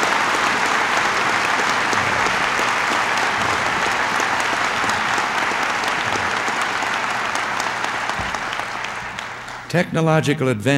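A crowd applauds loudly and then fades away.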